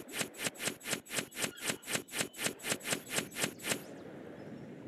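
Game cards flip over with a fast run of ticking clicks.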